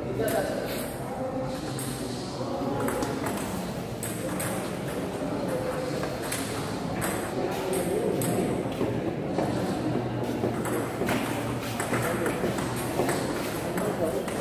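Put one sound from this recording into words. A ping-pong ball clicks sharply back and forth off paddles and a table.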